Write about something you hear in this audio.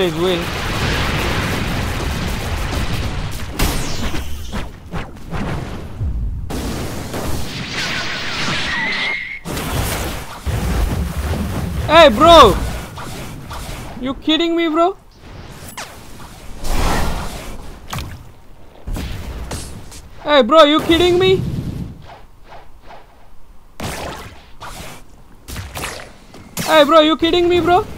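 Fighting-game attacks whoosh and blast in quick bursts.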